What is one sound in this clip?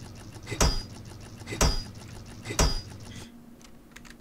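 A hammer strikes metal with ringing clangs, three times at an even pace.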